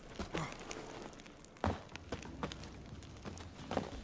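Boots knock against a wooden fence while climbing over it.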